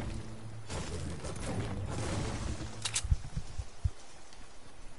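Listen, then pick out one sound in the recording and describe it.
A pickaxe strikes a tree with sharp hits.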